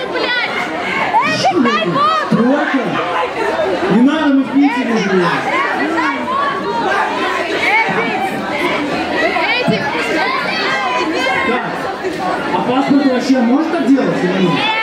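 A man raps loudly through a microphone over loudspeakers.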